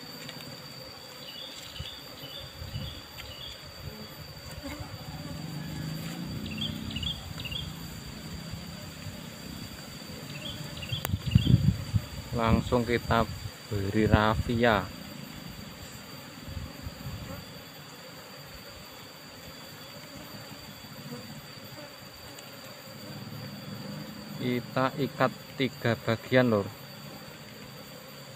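Bees buzz softly around a honeycomb.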